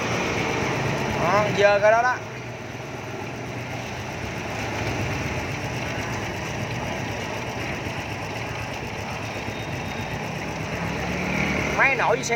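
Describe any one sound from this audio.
A small motorcycle engine idles steadily close by.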